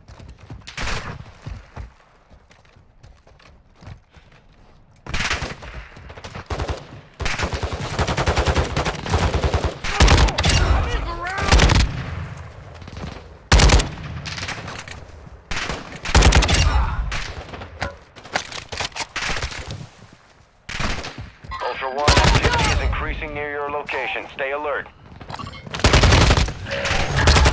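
Footsteps crunch quickly over dirt and grass.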